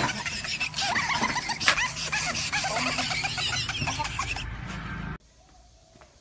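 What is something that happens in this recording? Several young men laugh loudly and excitedly.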